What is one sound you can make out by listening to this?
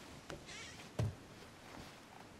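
A wooden chest lid knocks open.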